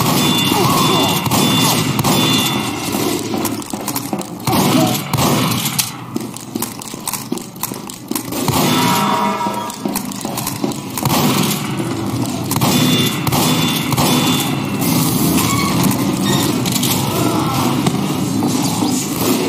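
Footsteps thud on metal stairs and floors.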